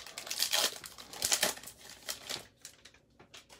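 A foil wrapper crinkles as hands tear it open.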